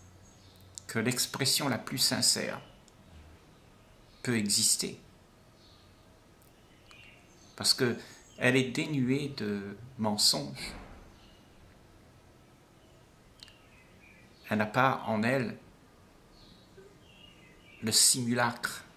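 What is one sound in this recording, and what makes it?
An elderly man speaks calmly and warmly in short phrases, close to a microphone, as if on an online call.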